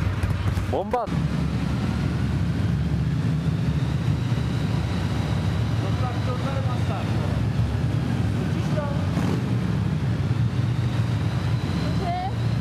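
A motorcycle engine drones steadily while riding.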